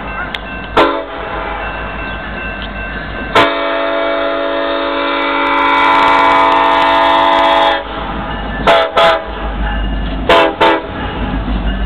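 A train horn blares loudly in long and short blasts.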